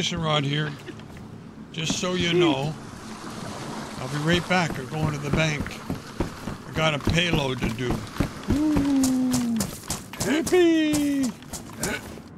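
Young men talk with animation through headset microphones.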